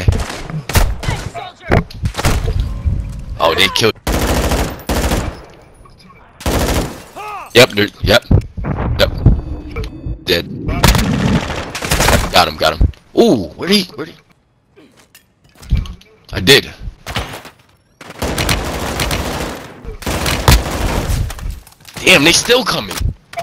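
Rapid gunfire rings out in bursts.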